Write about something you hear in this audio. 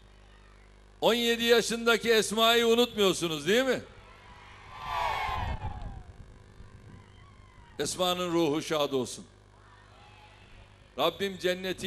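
A man speaks forcefully into a microphone through loudspeakers, echoing outdoors.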